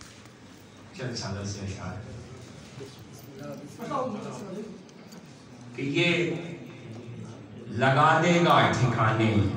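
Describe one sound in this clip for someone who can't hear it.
A man recites in a chanting voice through a microphone and loudspeakers.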